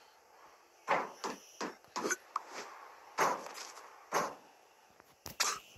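Footsteps thud on a metal surface as a figure runs.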